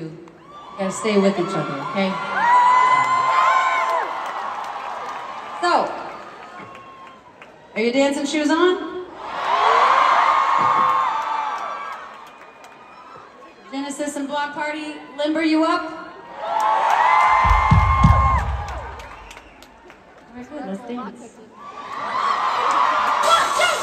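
A crowd cheers and sings along loudly.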